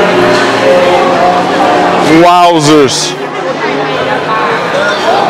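Several adults chatter nearby in a busy crowd.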